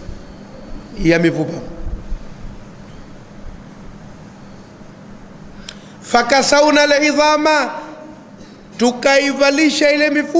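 A middle-aged man preaches forcefully into a microphone, with long pauses.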